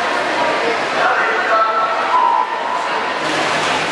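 Swimmers splash into the water.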